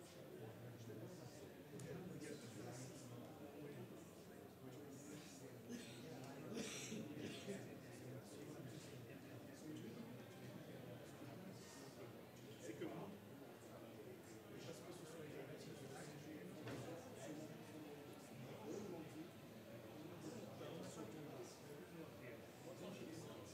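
Many people murmur and chat at a distance in a large room.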